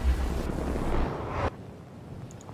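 Wind rushes loudly during a fall through the air, then cuts off.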